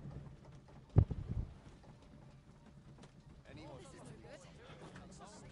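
A wooden cart bumps and rattles along a track.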